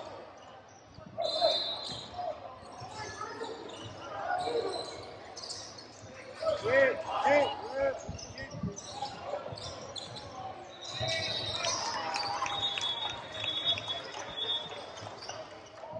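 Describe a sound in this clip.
Spectators shout and cheer nearby.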